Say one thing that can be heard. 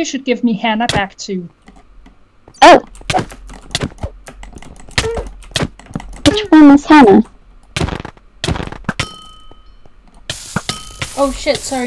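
Sharp hits and thuds from a game fight sound in quick bursts.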